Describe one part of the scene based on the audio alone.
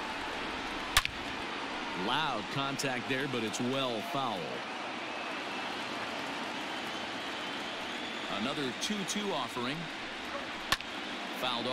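A baseball smacks sharply into a catcher's mitt.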